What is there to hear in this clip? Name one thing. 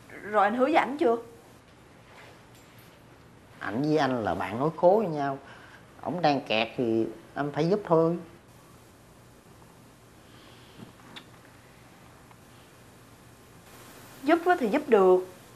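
A young woman speaks close by in an upset, pleading voice.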